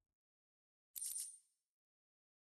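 A short chime sounds.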